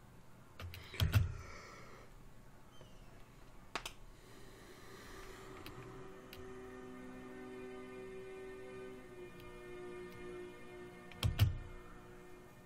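A short interface click sounds twice.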